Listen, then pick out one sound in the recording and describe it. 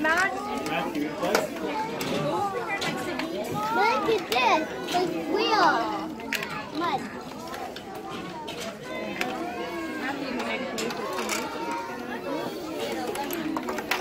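Young children chatter and call out excitedly nearby.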